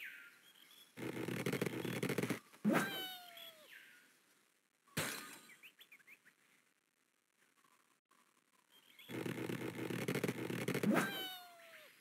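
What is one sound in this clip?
A slingshot stretches with a long creak.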